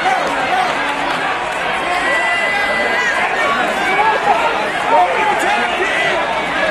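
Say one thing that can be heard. A large crowd cheers and chatters loudly in a big echoing arena.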